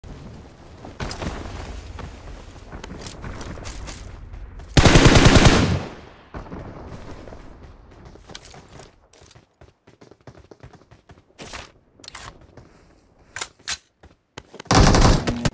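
Footsteps thud on a roof.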